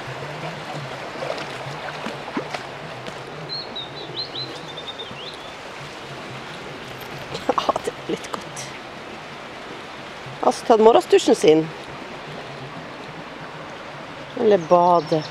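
Water trickles and babbles in a shallow stream.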